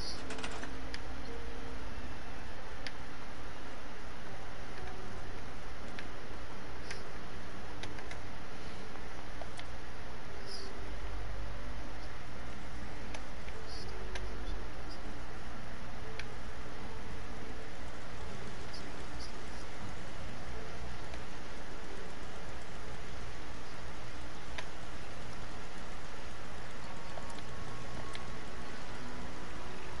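Short clicks from a game's building menu sound now and then.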